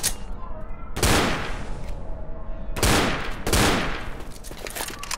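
A shotgun fires a few loud blasts.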